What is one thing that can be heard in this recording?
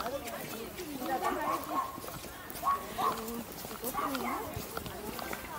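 A group of people talk in passing nearby.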